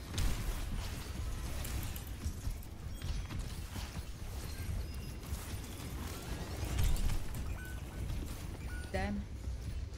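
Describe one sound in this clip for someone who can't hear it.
A young woman talks close to a microphone.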